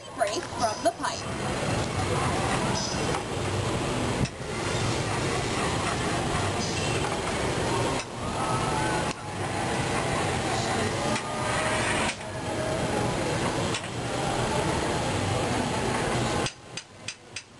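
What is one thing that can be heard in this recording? A gas furnace roars steadily close by.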